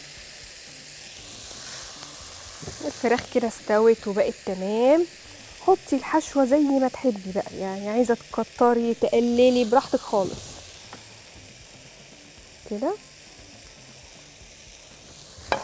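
A spatula scrapes and spreads a soft filling in a metal pan.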